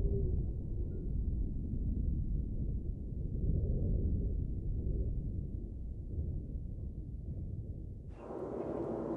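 Choppy waves slosh and splash.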